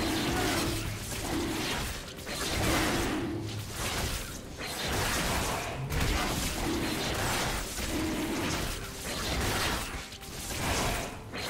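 Magic blasts and sword strikes clash in a fast fight.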